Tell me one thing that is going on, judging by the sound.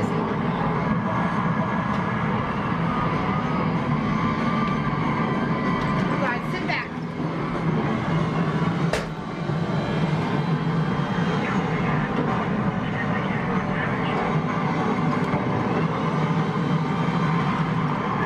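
An arcade flight-combat game plays loud sound effects.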